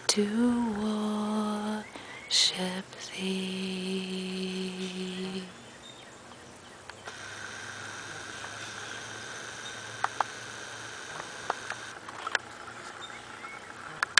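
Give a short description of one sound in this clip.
A shallow stream trickles and babbles over stones.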